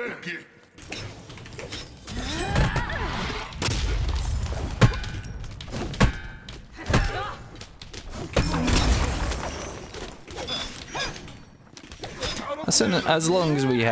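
Weapons clash and magic blasts burst in a fast fight.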